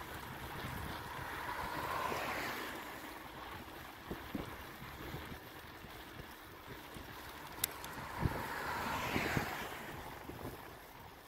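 A car passes close by with a rising and fading whoosh.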